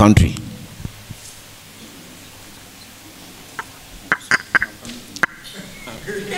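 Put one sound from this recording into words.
A man speaks to an audience in a large echoing hall.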